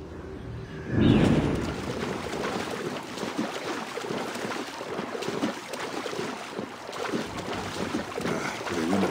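A swimmer splashes through water.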